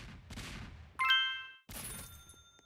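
A bright chime rings once.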